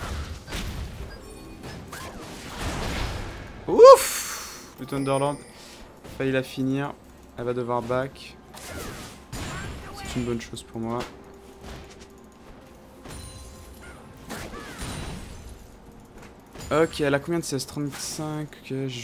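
Fantasy battle sound effects whoosh, zap and clash.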